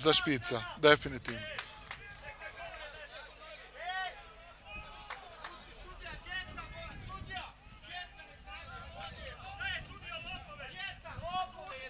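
Men shout and call out outdoors.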